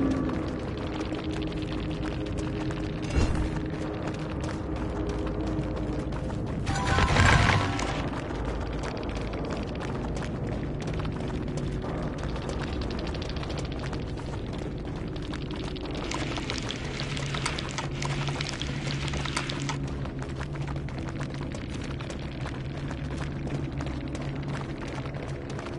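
Footsteps rustle through tall grass.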